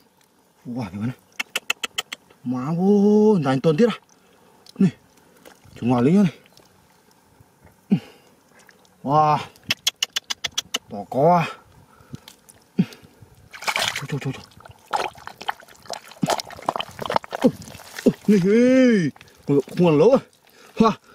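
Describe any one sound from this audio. Wet mud squelches as hands dig and squeeze through it.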